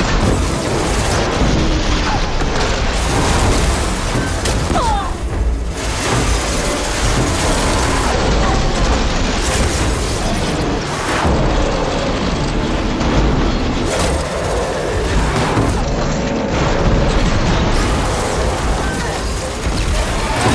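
A large machine creature stomps and roars in battle.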